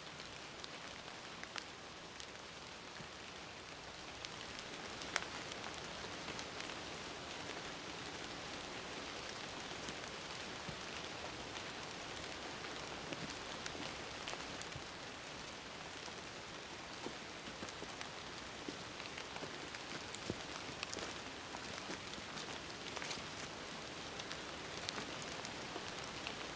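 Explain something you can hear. Footsteps crunch on dry leaves and twigs, coming closer.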